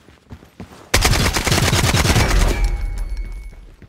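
A rifle fires a rapid burst of loud shots indoors.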